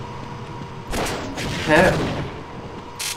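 A heavy machine gun fires a rapid burst.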